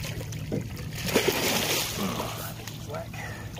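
Water splashes as a net is pulled from a river.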